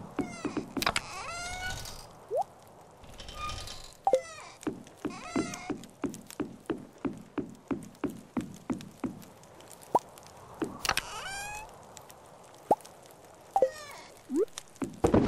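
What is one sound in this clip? A short chirping chime plays several times.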